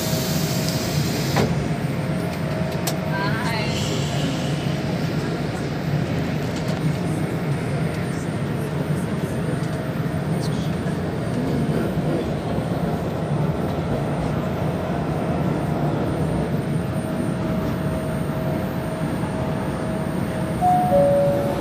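A train's motor whines at a steady pitch.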